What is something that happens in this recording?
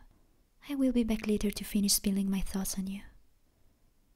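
A young woman speaks softly and close up.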